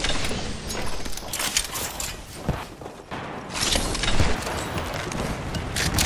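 A short chime sounds as an item is picked up.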